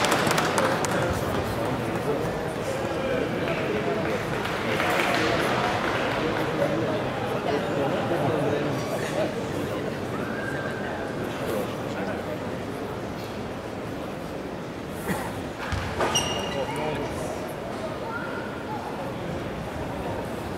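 A crowd murmurs steadily in the background.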